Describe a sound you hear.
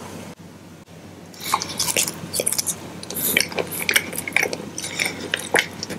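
A man chews gum with soft, sticky smacks.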